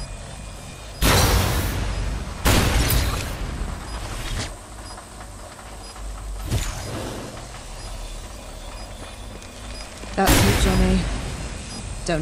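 A loud whooshing burst rushes past and fades.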